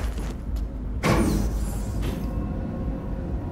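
Elevator doors slide shut with a soft thud.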